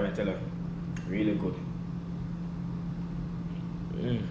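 A man swallows a drink in loud gulps.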